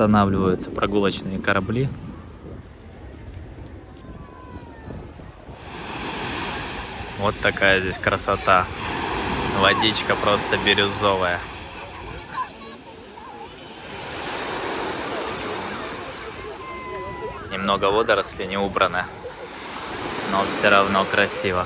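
Men, women and children talk and call out nearby outdoors.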